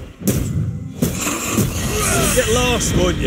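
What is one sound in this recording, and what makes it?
A fiery blast crackles and roars.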